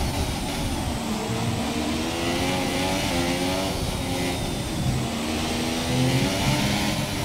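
A racing car engine screams at high revs, rising and dropping as it shifts gears.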